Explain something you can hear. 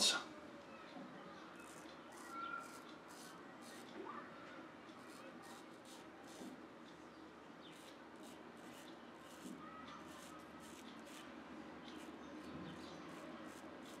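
A razor blade scrapes softly over stubble.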